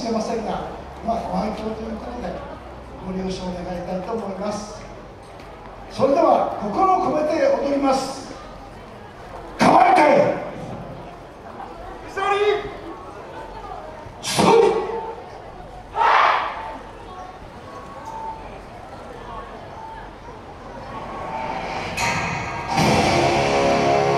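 A crowd of spectators chatters nearby outdoors.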